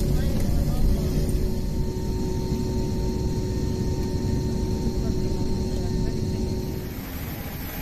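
A plane's engines rumble steadily from inside the cabin as it taxis.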